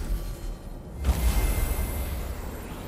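A magic seal bursts into life with a deep whoosh.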